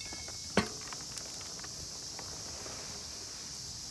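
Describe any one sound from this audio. Soil pours from a scoop into a pot.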